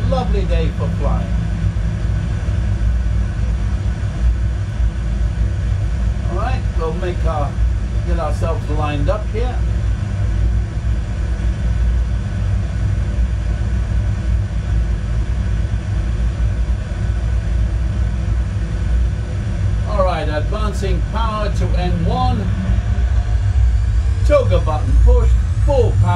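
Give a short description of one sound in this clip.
A low engine rumble hums steadily throughout.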